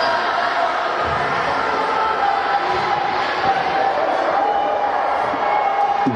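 A basketball bounces on a wooden floor as a player dribbles.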